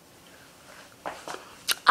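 A young girl giggles close by.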